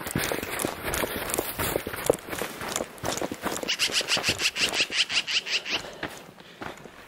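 Footsteps crunch through dry brush.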